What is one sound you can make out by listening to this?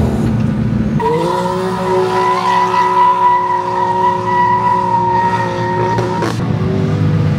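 A car engine revs high and holds a steady whining roar as the car speeds along.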